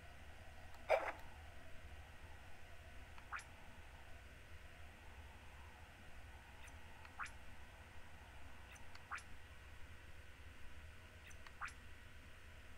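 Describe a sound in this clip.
Short soft clicks tick now and then.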